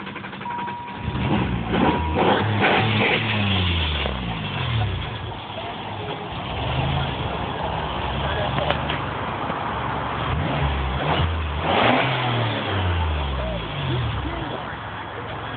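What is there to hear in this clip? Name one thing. A car engine revs hard and loud, rising and falling.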